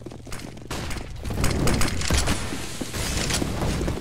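A grenade bursts with a loud boom.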